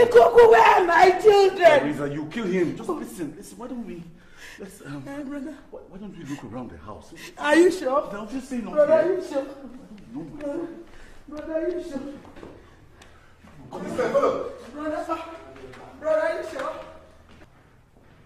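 A woman cries out and pleads.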